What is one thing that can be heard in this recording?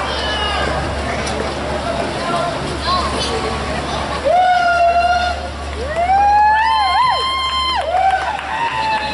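A large mariachi band plays outdoors through loudspeakers.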